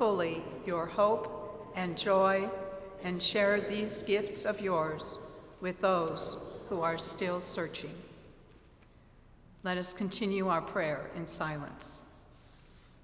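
An elderly woman reads aloud through a microphone in a large echoing hall.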